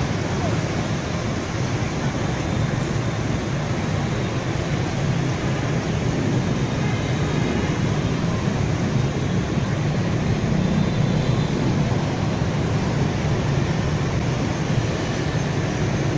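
Motorbike engines buzz as they pass close by.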